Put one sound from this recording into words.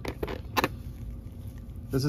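Small scissors snip through soft tissue.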